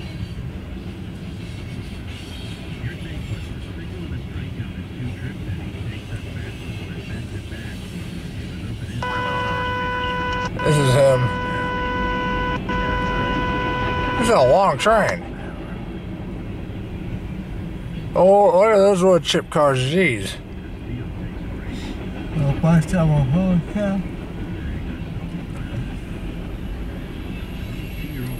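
A freight train rumbles and clatters steadily past nearby.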